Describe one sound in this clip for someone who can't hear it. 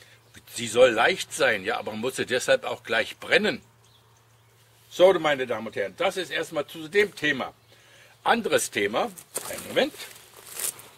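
An elderly man speaks calmly close by.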